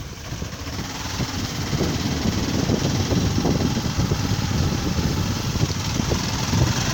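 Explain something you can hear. Tyres rumble and crunch over a wet, rough dirt road.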